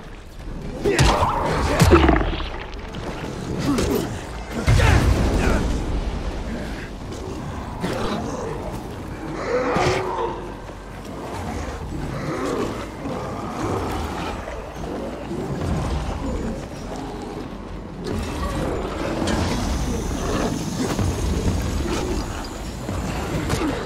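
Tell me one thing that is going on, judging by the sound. Heavy blows thud against bodies.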